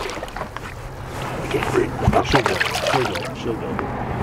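A fish splashes in water.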